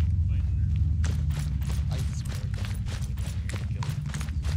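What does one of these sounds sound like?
Footsteps crunch steadily on dry, stony ground.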